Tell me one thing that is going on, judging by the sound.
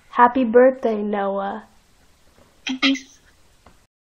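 A boy talks through a webcam microphone, close up.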